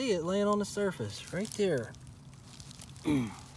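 Fingers rustle through dry leaves and soil.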